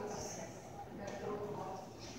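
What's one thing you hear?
Footsteps echo softly in a large hall.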